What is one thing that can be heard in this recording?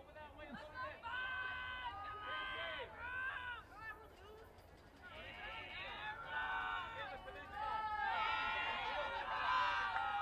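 A group of young girls chants and cheers loudly nearby.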